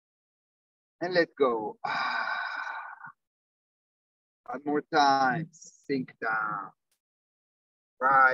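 A man speaks with animation through a clip-on microphone, in short bursts with pauses.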